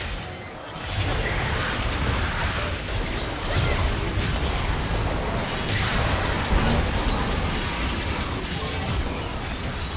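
Heavy magical blasts boom repeatedly.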